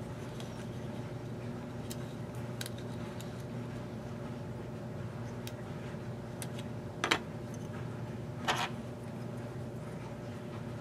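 Thin plastic pieces click and tap as hands handle them.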